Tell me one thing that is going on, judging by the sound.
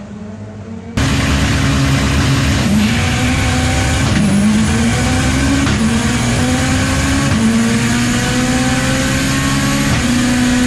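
A race car's engine roars from inside the car, climbing in pitch again and again as it shifts gears.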